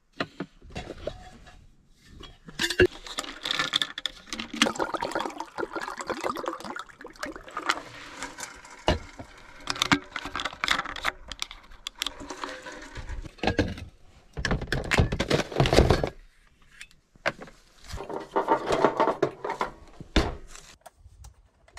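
Plastic bottles and containers rattle and knock as they are handled.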